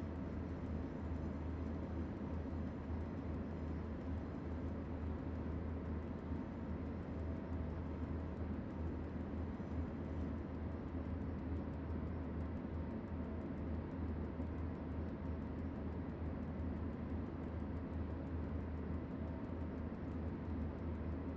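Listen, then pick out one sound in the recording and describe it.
A train's electric locomotive hums and rumbles steadily as it runs along the track.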